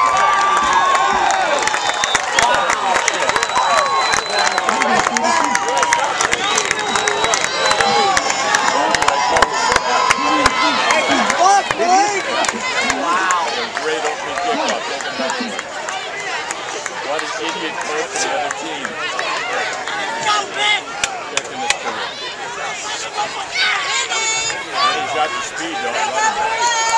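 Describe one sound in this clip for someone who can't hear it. A man close by shouts and cheers.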